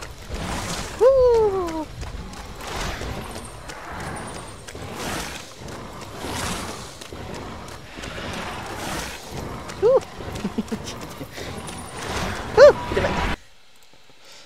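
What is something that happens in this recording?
Small creatures shriek and squeal in short, falling cries.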